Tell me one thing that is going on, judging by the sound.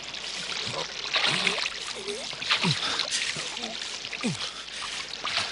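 A stream trickles and splashes nearby.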